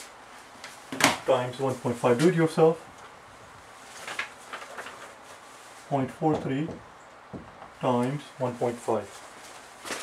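A middle-aged man speaks calmly and clearly close by.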